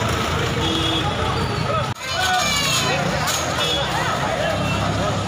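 A large crowd of men shouts and clamours outdoors.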